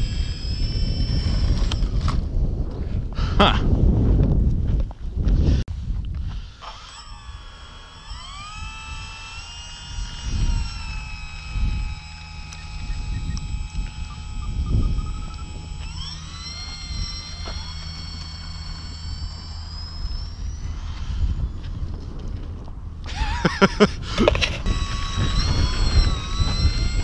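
A small propeller whirs with a high whine that rises and falls.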